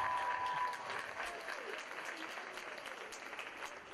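Girls' shoes tap on a wooden stage as they walk off.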